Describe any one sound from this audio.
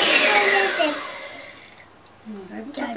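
An electric hand mixer whirs loudly.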